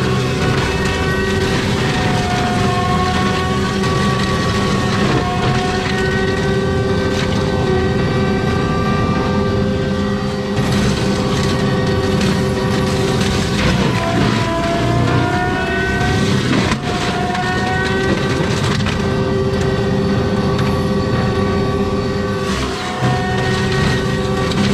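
A loud diesel engine roars steadily and changes pitch as it works.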